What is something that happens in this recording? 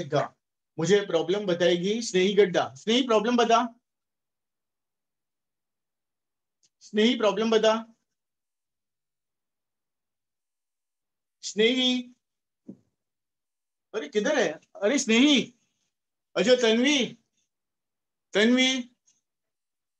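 A middle-aged man speaks calmly and clearly close to a microphone, in short bursts with pauses.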